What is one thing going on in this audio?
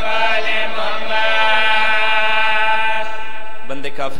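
A man sings a long, high, wailing note through a microphone.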